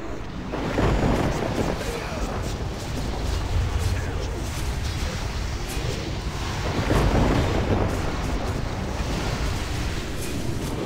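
Magic spells crackle and burst in a busy fight.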